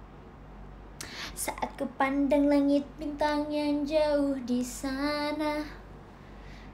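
A young woman sings a short phrase with held notes.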